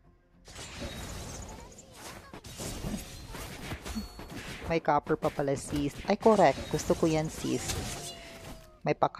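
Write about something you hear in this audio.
Magic spells whoosh and blows clash in a fast fight.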